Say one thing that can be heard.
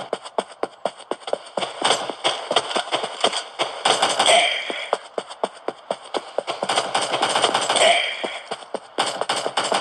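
Rapid video game gunshots fire from a small tablet speaker.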